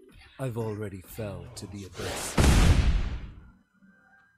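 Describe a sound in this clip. A loud magical whoosh swells and cuts off.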